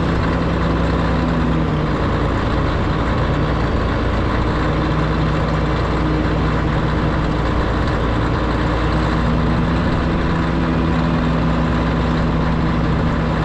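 A large diesel engine rumbles loudly and steadily close by.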